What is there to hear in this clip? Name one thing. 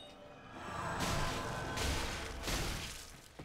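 A sword swishes and clashes loudly.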